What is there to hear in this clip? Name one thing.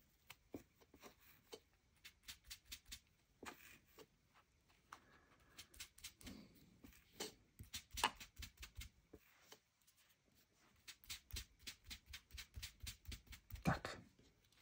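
A sponge dabs softly and repeatedly on paper.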